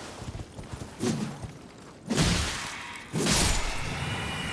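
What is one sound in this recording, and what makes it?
A sword whooshes and slashes in sharp bursts.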